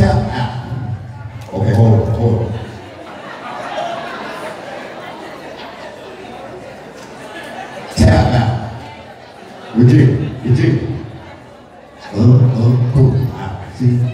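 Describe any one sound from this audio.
A young man raps loudly into a microphone through a loudspeaker in an echoing hall.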